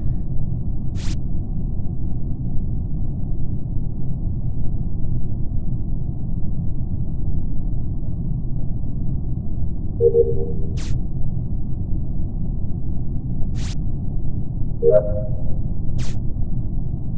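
Game interface clicks sound sharply a few times.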